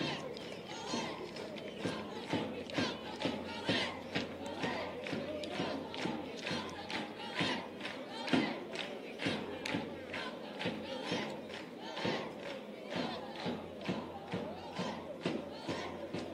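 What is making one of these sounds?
Fans clap their hands in a steady rhythm.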